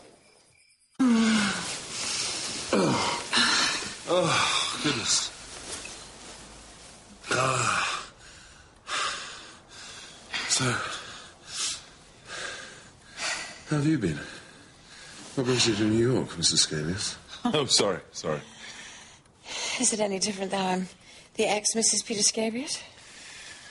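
A man talks with animation nearby.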